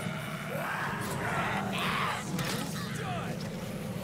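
Blows thud and smack during a brawl.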